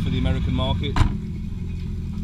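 A hinged lid on a jet ski shuts with a heavy thud.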